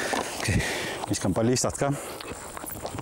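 A man speaks calmly close to a microphone, outdoors.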